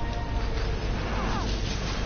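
An energy blast bursts with a loud crackling boom.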